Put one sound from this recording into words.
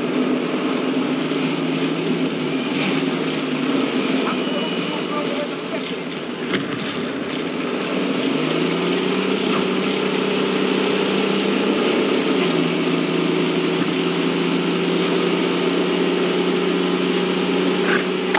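Tank tracks clatter and squeak over a dirt road.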